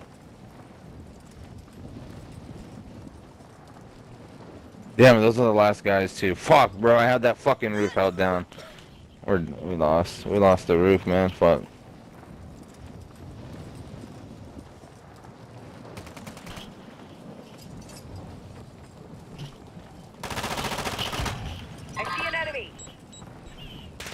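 Wind rushes past during a parachute descent.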